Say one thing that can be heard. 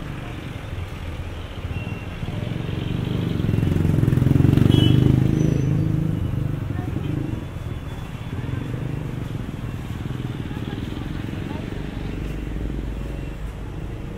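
Street traffic rumbles steadily nearby outdoors.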